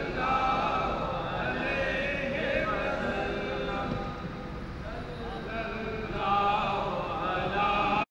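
An elderly man recites in a melodic voice through a microphone.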